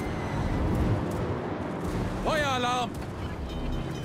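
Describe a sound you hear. Heavy naval guns fire with deep booms.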